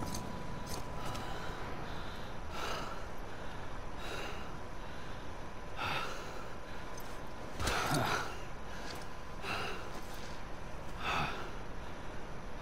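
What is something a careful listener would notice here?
A man pants heavily in loud, ragged breaths.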